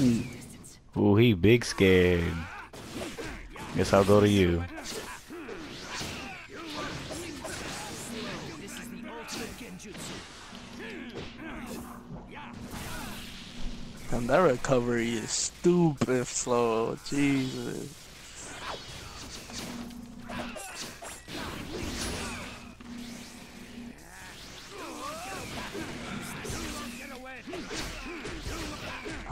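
Punches and sword slashes thud and swish in a fast video game fight.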